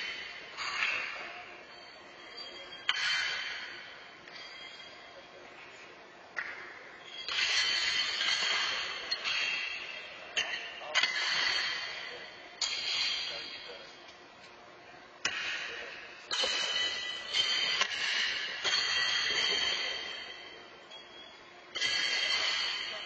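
Horseshoes clang against steel stakes, echoing through a large hall.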